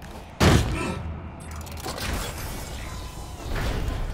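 A heavy metal door slides open with a mechanical hiss.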